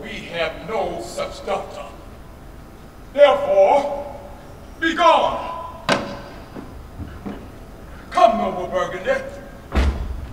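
A man declaims loudly, in a room with some echo.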